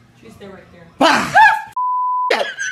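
A person screams in fright.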